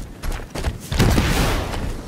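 A blade swings and strikes with a heavy hit.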